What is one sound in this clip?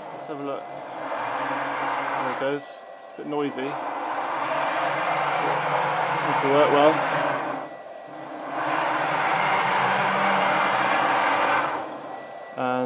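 Stepper motors whir and hum as a machine's gantry slides along its rails.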